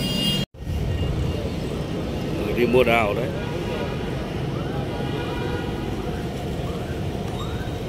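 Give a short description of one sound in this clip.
An adult talks nearby outdoors.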